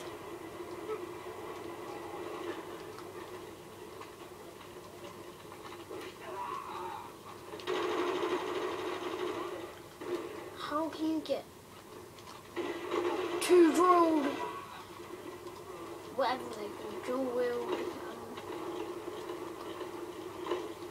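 Video game noise plays from a small loudspeaker in a room.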